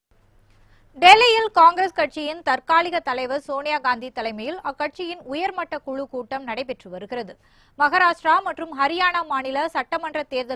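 A young woman reads out news clearly into a microphone.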